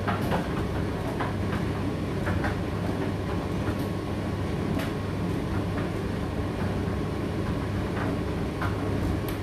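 A condenser tumble dryer runs with a low rumbling hum.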